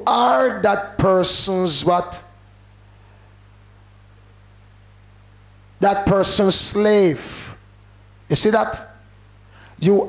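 A man preaches with animation into a microphone, his voice rising and pausing between phrases.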